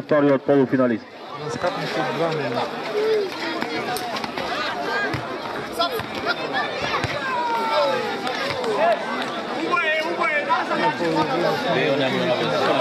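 A large crowd shouts and cheers with a noisy din.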